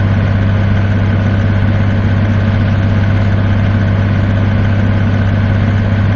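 A truck engine drones steadily at cruising speed.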